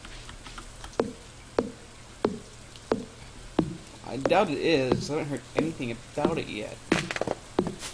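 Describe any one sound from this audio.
An axe chops into a tree trunk with sharp, evenly spaced knocks.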